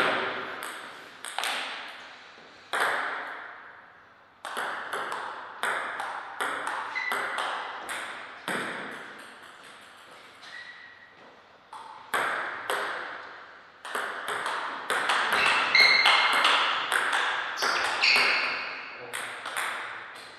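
A table tennis ball clicks sharply off paddles and the table, echoing in a large hall.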